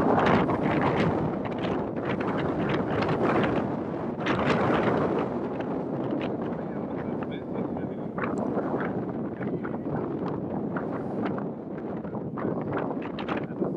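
Horses' hooves thud on grass.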